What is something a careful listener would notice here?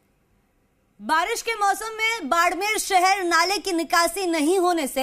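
A young woman speaks clearly into a microphone.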